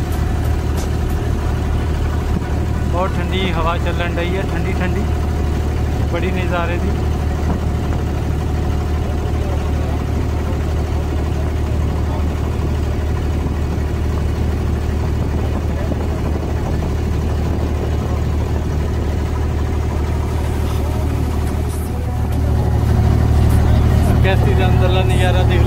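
A boat engine hums low and steadily.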